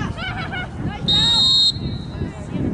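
A referee's whistle blows once, sharp and shrill.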